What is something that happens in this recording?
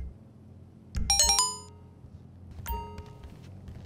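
Bright chiming menu tones ring out in quick runs.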